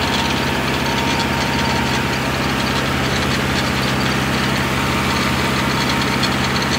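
A rotary tiller churns through dry soil.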